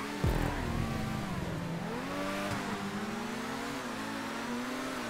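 A racing car engine roars and whines, rising and falling as it shifts gears.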